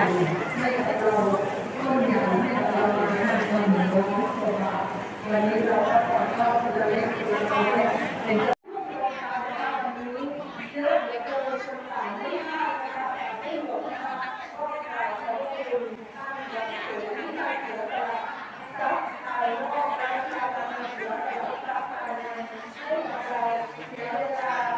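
A crowd of men and women talk and murmur close by.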